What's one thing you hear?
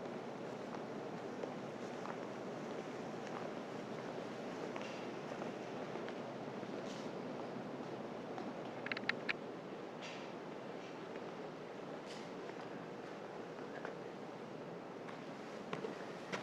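Footsteps shuffle softly on a hard floor in a quiet, echoing hall.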